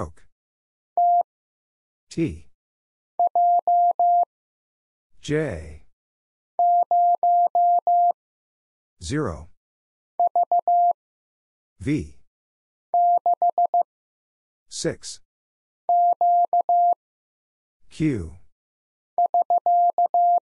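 Morse code beeps tap out in short bursts of a steady high tone.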